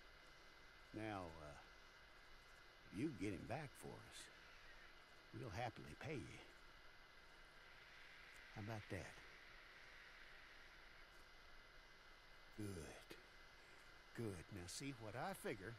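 A middle-aged man speaks calmly and gruffly, close by.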